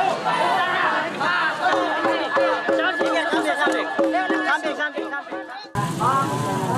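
A crowd of men chants and cheers loudly outdoors.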